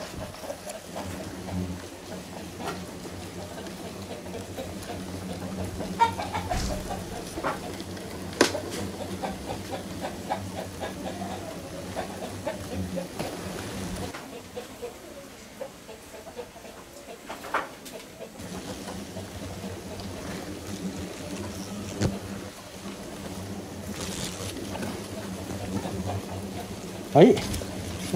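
Hornets buzz around a nest close by.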